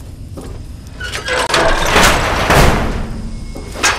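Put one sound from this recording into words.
A heavy metal door slides and clanks.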